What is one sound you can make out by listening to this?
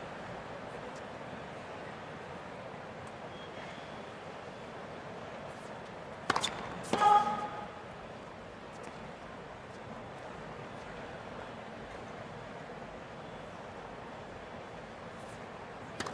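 A tennis player bounces a ball on the court.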